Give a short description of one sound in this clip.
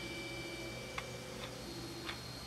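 Keys click softly as they are pressed.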